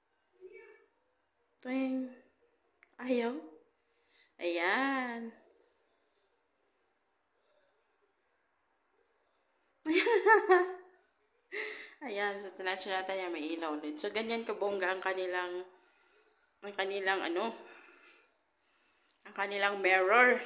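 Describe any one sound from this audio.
A young woman speaks close by, in short bursts, with pauses between them.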